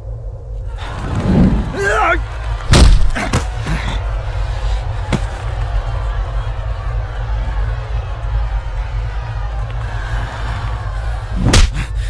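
A crowd shouts and clamours.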